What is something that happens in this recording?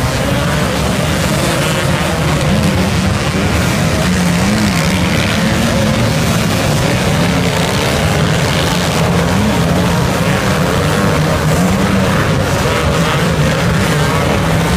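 Many motorbike engines roar and rev loudly nearby.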